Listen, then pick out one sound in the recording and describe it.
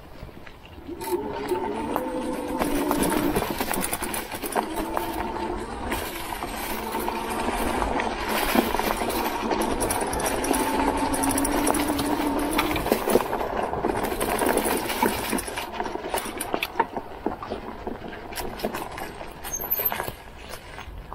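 Bicycle tyres crunch over dry leaves and twigs.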